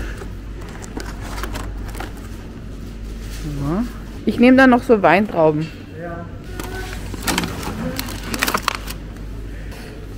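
A plastic fruit punnet crinkles and clicks as it is handled.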